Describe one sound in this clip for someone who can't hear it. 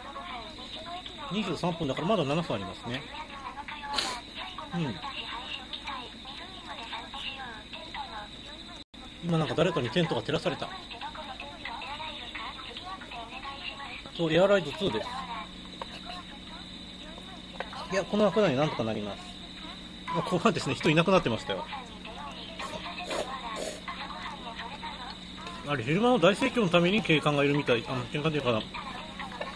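A young man talks calmly and close by, in short bursts.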